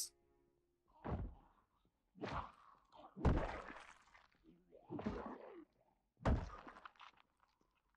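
A zombie groans and snarls.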